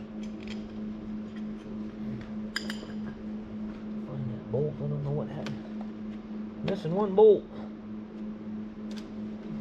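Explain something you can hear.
Metal parts clink and tap.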